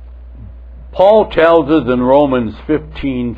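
An elderly man speaks slowly and solemnly into a microphone.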